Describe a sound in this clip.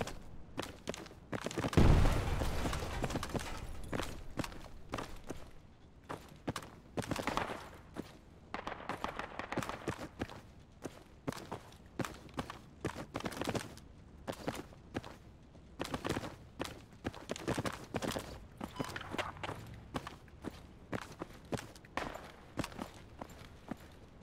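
Footsteps thud on a hard floor at a steady walking pace.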